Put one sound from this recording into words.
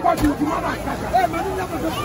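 A young man shouts with excitement close by.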